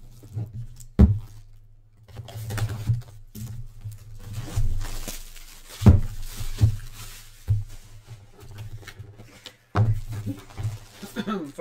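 Cardboard taps and bumps on a table.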